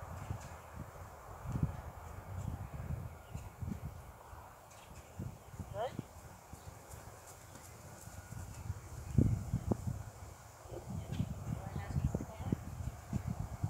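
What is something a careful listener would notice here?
Outdoors, wind rumbles against the microphone.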